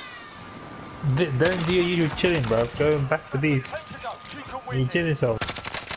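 Rapid gunshots ring out close by.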